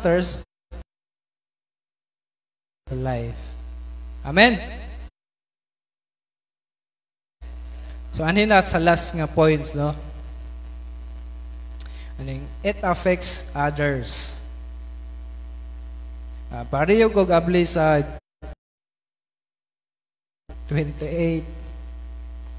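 A man speaks through a microphone and loudspeakers, in bursts with pauses.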